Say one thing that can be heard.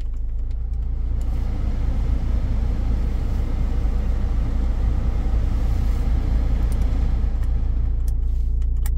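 A car's heater fan blows air with a steady rushing hiss.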